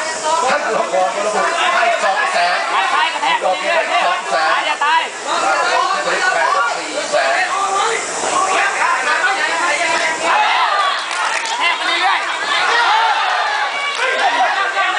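A crowd shouts and cheers loudly nearby.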